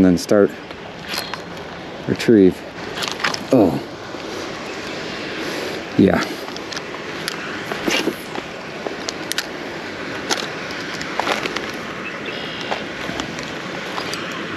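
A fishing reel clicks as its line is wound in.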